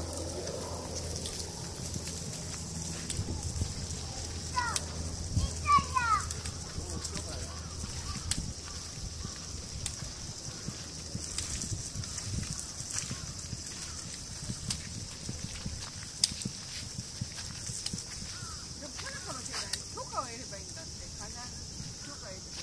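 Stroller wheels roll over pavement.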